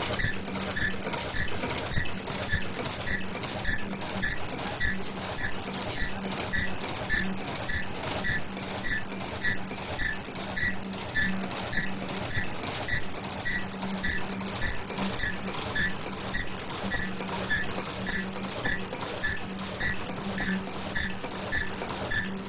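A machine clacks and clicks in a fast, steady rhythm.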